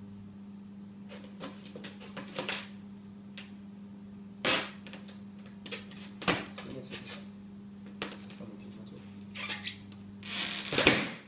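A balloon's rubber squeaks and rustles under hands.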